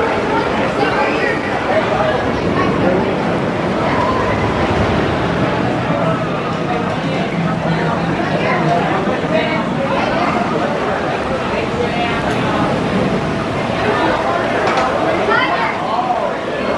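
A crowd of riders screams and shouts excitedly nearby.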